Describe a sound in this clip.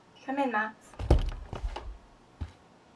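A door opens with a low thud.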